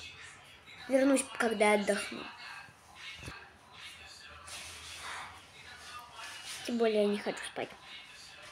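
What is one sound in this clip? A young boy speaks close to the microphone.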